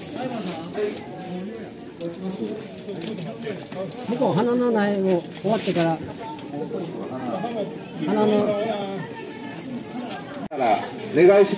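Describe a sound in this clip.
An elderly man talks close by with animation.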